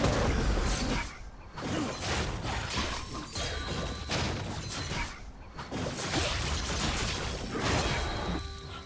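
Game combat sounds clash and crackle in quick bursts.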